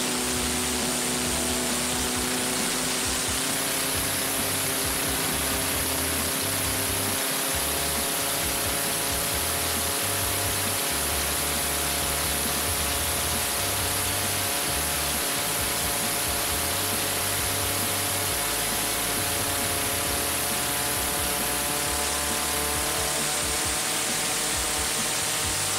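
Spray and water rush and hiss against a speeding hull.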